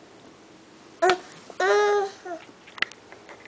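A toddler squeals briefly in a high voice close by.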